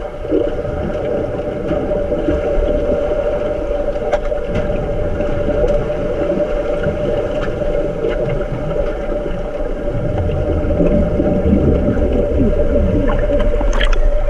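Bubbles gurgle and rumble underwater.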